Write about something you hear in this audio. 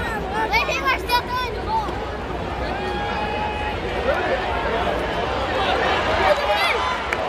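A large stadium crowd cheers and shouts loudly outdoors.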